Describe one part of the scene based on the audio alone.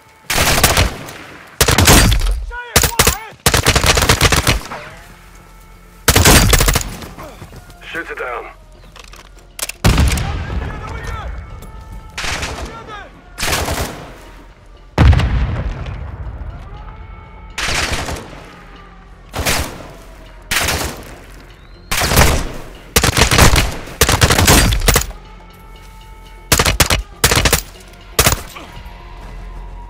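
Rifle shots crack in sharp bursts, each followed by a rolling echo.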